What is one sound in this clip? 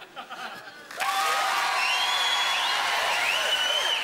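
A crowd laughs and cheers loudly.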